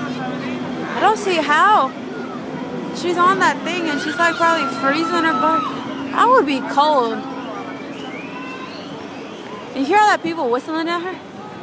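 People in the crowd shout and cheer loudly in short bursts.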